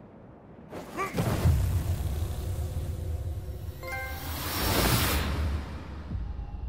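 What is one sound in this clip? A body is flung high into the air with a loud rushing whoosh.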